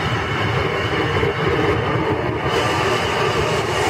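A stringed instrument is played loudly.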